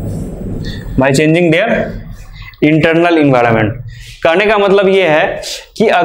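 A young man speaks steadily into a microphone, explaining.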